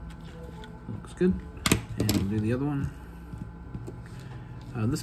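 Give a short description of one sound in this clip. Small metal parts click and tap close by.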